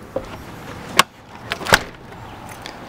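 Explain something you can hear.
A door clicks open and bangs.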